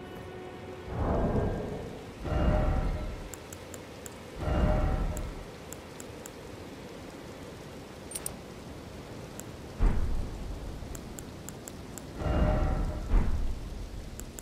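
Airy whooshes swell as menus open and close.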